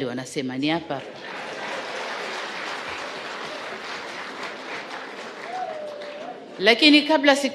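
A crowd laughs.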